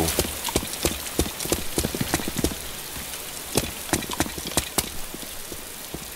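Footsteps thud on the ground.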